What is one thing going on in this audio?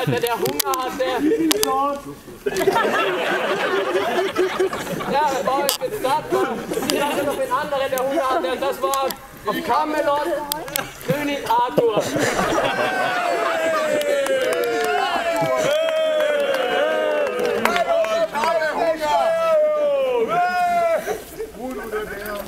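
A crowd of men and women talk and call out with animation outdoors.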